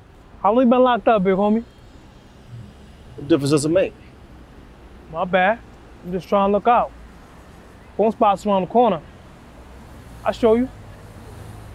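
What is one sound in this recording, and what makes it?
A man speaks close by in short, lively bursts.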